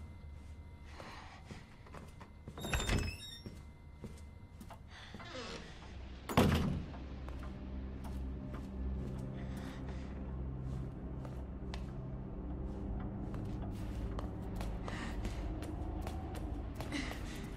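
Footsteps tap on a hard floor at a walking pace.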